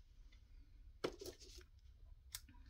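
Metal scissors clatter as they are picked up.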